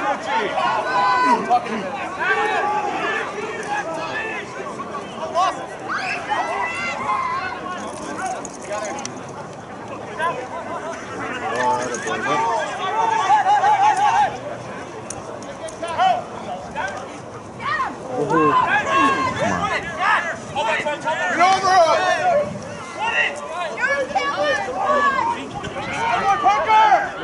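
Spectators on the sideline cheer and call out.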